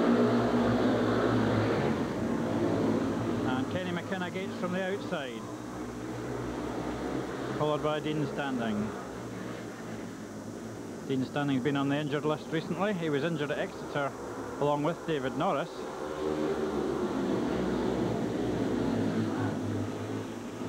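Motorcycles race around a track, engines droning and fading.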